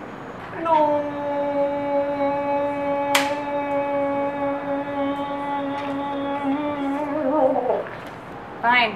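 A man shouts a long, drawn-out cry close by.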